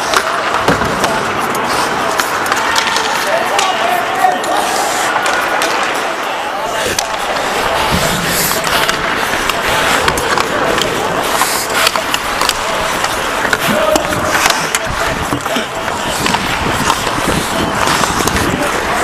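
Ice hockey skates scrape and carve across the ice.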